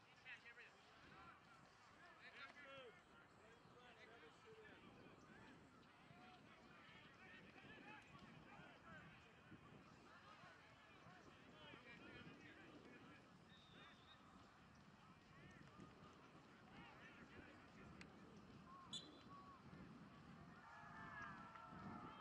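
A crowd of spectators chatters outdoors, some distance away.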